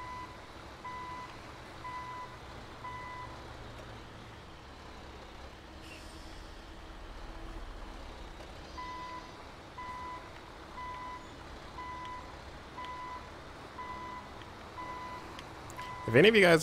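A truck's reversing alarm beeps steadily.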